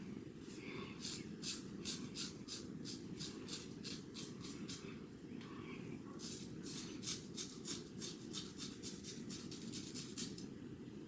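A razor scrapes over stubble in short, quick strokes.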